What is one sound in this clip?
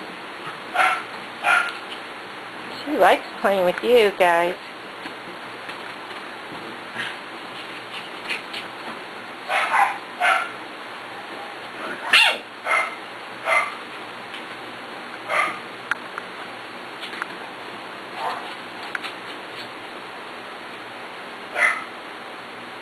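Puppies yelp and squeal in short, high bursts.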